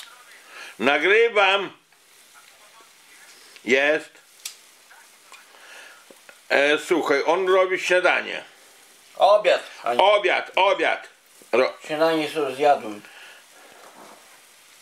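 A knife snips through fresh herbs over a pan.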